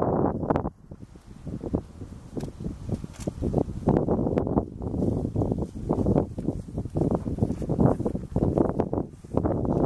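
Wind buffets outdoors in gusts.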